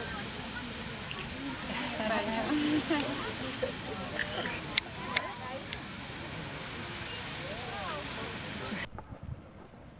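A geyser roars and hisses as it erupts steadily.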